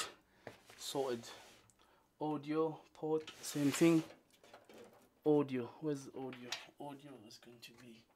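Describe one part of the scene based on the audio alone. Cables rattle and tap against metal.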